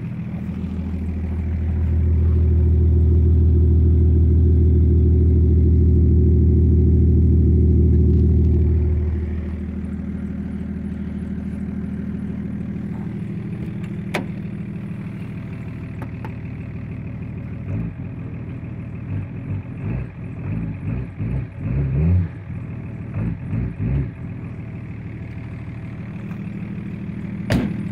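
A car engine idles with a steady low rumble, loudest close to the exhaust.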